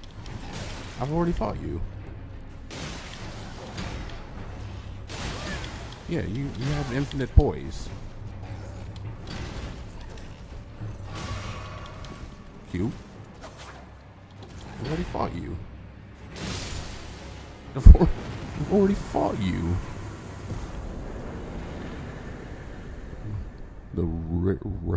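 A large creature snarls and roars.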